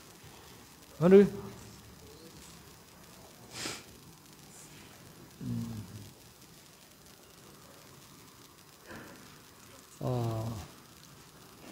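A man speaks in short phrases into a close microphone.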